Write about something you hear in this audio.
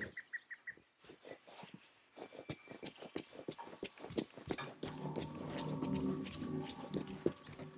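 Quick light footsteps patter on stone paving.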